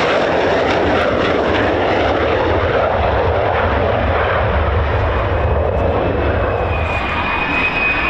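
A jet engine rumbles with a deep, throbbing roar.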